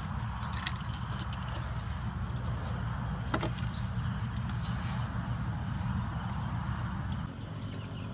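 Footsteps rustle through long grass.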